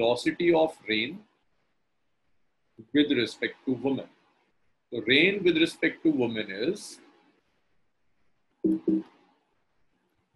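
A young man explains calmly through a microphone, in short bursts with pauses.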